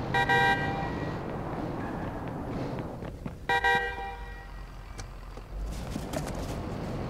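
A van's engine hums steadily as it drives along a road.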